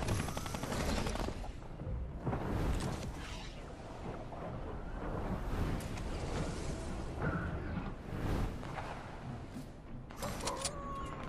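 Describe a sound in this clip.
Wind rushes past steadily during a glide through the air.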